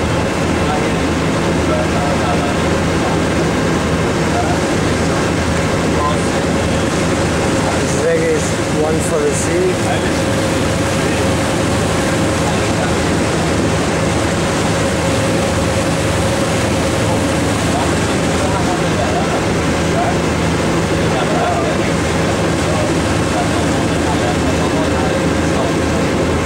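Water churns and splashes in the boat's wake.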